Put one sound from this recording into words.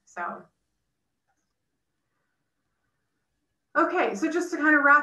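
A young woman speaks calmly through an online call.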